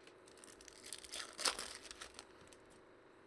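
Foil wrapping crinkles and tears as a pack is opened.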